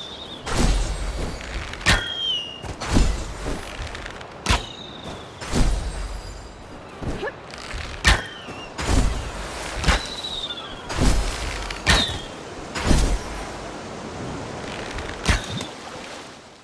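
Heavy footsteps thud in a steady rhythm on soft ground.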